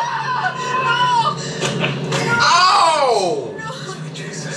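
A young woman cries out in shock close by.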